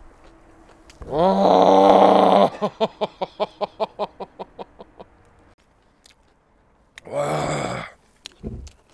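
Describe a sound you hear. A young man cries out loudly close to a microphone.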